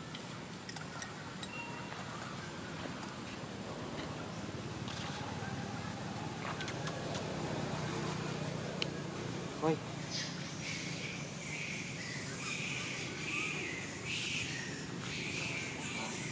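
A monkey's feet patter softly over dry leaves and gravel.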